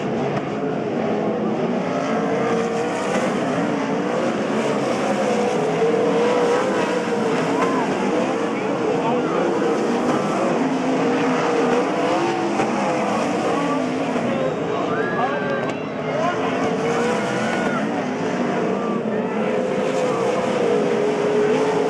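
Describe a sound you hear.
Racing car engines roar loudly, rising and falling in pitch.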